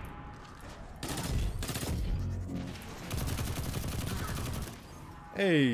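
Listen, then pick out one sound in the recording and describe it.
Game gunfire blasts rapidly and loudly.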